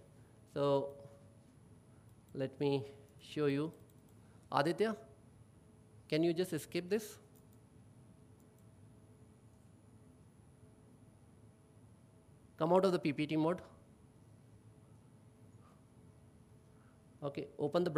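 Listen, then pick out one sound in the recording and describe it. A man speaks calmly into a microphone in a hall, in short bursts with long pauses.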